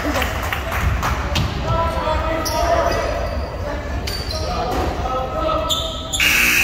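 Spectators chatter and call out in an echoing gym.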